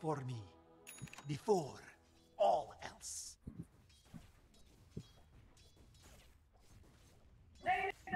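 Magic spells whoosh and burst during a fight.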